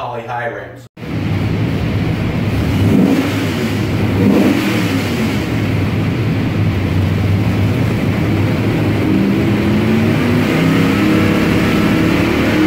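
A large engine runs loudly with a deep, steady roar.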